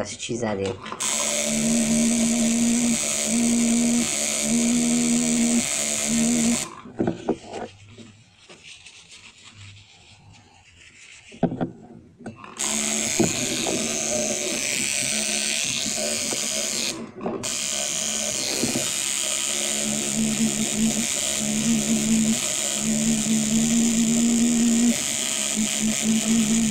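A tattoo machine buzzes steadily, close by.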